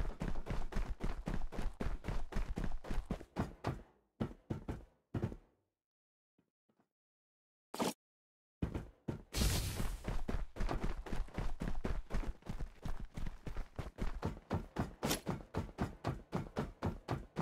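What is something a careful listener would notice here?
Quick footsteps thud and scuff along the ground.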